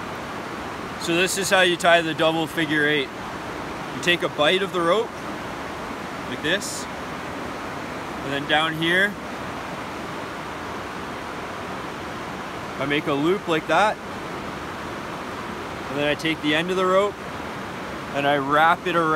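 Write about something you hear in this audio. A man talks calmly and explains, close by.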